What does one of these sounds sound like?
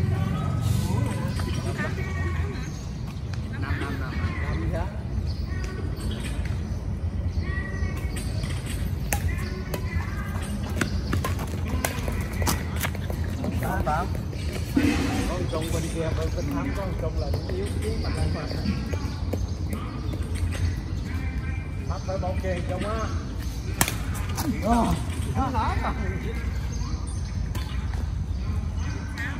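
Men and women talk and call out to each other outdoors.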